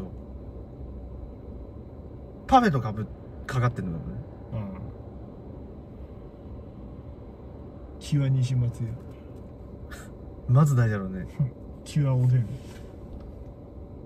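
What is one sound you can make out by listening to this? A car engine idles quietly.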